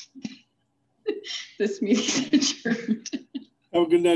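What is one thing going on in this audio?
A woman laughs through an online call.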